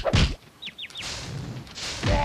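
A heavy blow lands with a crash.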